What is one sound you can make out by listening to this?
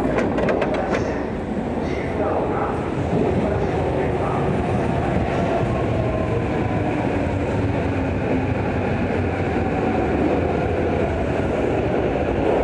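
Footsteps of many people shuffle past on a hard floor.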